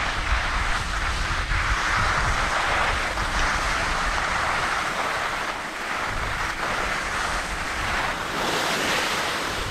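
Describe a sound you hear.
Skis scrape and hiss steadily over packed snow.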